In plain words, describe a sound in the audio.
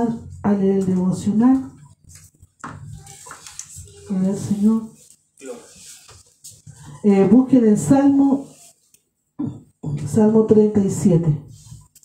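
A middle-aged woman speaks with feeling through a microphone and loudspeakers in a small echoing room.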